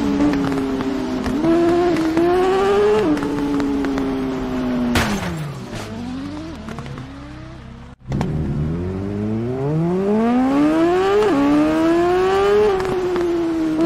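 A motorcycle engine revs loudly and shifts through the gears.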